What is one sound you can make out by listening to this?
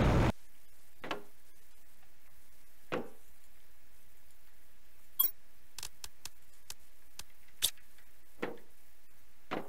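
Footsteps thud softly on a metal floor.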